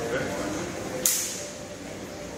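An electric mosquito racket zaps an insect with a sharp crackle.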